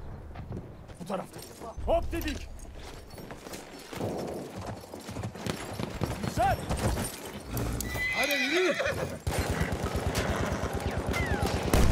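A horse gallops with quick, thudding hoofbeats on sand.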